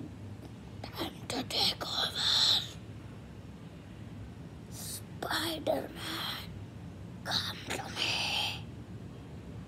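A boy makes growling, hissing noises close by.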